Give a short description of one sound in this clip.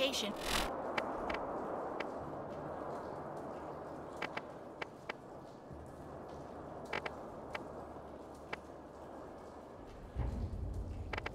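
Soft menu clicks tick now and then.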